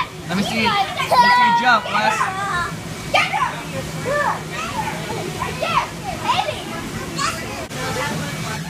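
Children shout and squeal excitedly close by.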